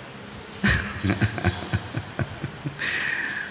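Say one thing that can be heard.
A middle-aged man laughs into a microphone.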